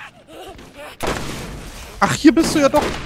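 A sniper rifle fires a single loud shot.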